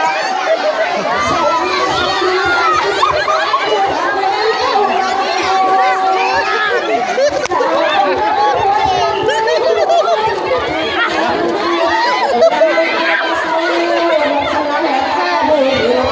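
A dense crowd of men and women shouts and chatters excitedly close by.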